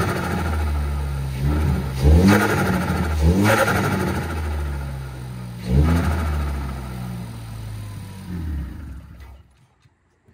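A car engine idles with a deep rumble.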